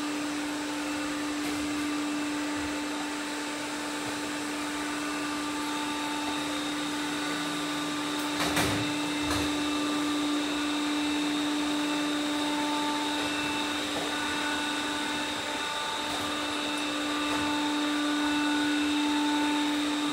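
A robot vacuum hums steadily as it moves across a wooden floor.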